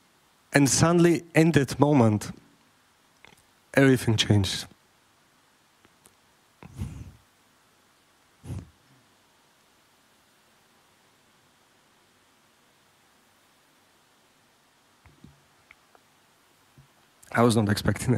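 A man sings into a microphone in short phrases, with long pauses between.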